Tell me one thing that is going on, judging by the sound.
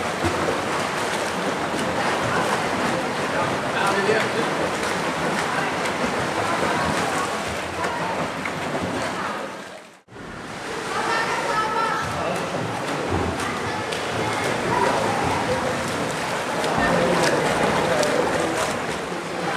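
A crowd of young people chatters and calls out in the echoing hall.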